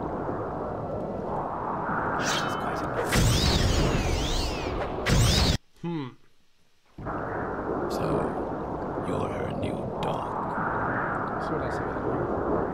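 A young man talks casually into a close microphone.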